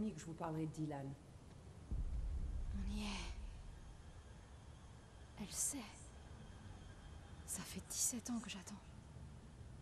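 A young woman speaks calmly and quietly.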